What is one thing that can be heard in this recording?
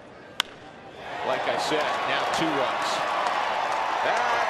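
A large crowd cheers and roars loudly in an open stadium.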